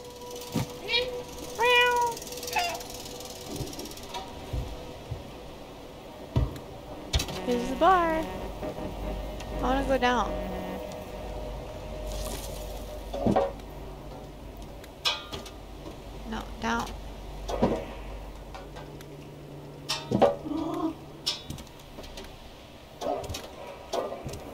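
Footsteps patter as a small creature runs across wooden boards.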